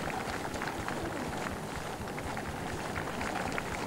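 Horse hooves clop on hard ground.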